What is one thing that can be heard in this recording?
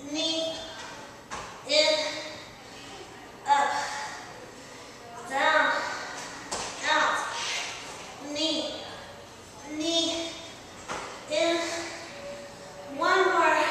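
A young woman speaks with animation in a room with a slight echo.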